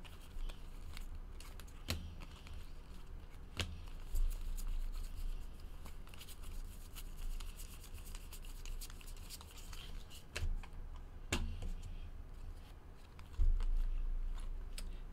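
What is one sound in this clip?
Trading cards flick and snap as they are shuffled by hand.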